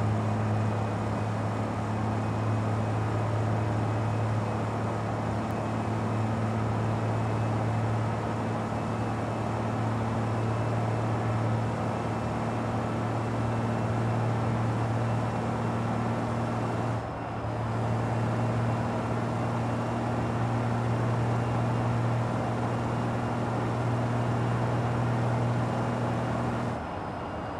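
A truck engine drones steadily at a low pitch, dipping briefly before picking up again.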